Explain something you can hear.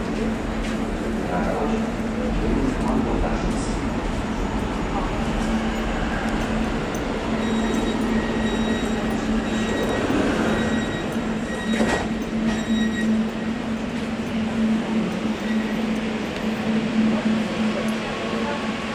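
A metro train rumbles and hums steadily as it travels.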